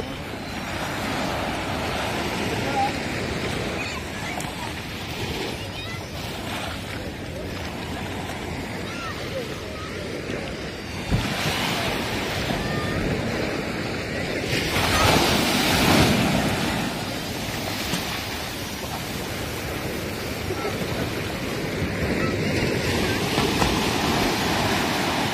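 Waves break and wash up on a shore nearby.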